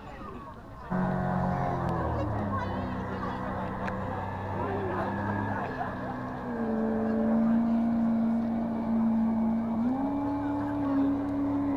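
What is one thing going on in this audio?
A powerboat engine roars loudly as the boat speeds across the water, its pitch rising and falling.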